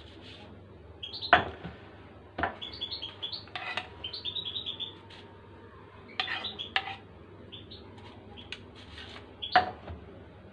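A spoon clinks and scrapes against a metal pot.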